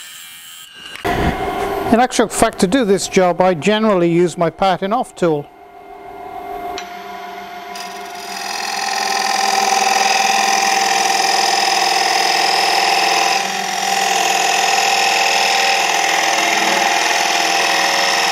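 A wood lathe motor runs, spinning a wooden bowl blank.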